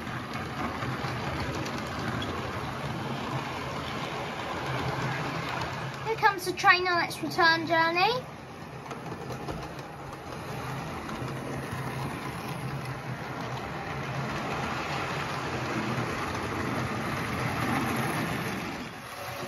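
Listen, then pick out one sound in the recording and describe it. A model train rattles and hums steadily along its track close by.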